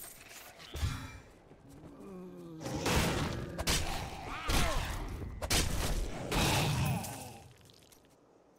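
Blows land in a fierce fight.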